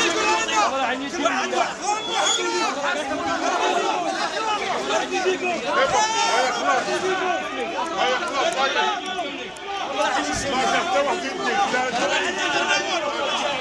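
A crowd of men shouts and chants loudly close by, outdoors.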